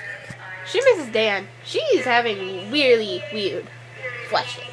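A young girl speaks animatedly close to a microphone, with a high, swooping voice.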